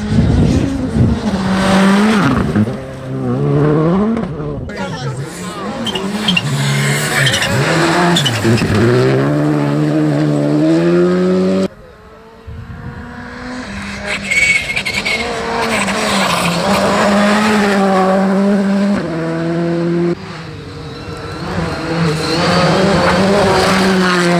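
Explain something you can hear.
A rally car engine roars and revs hard as it speeds past.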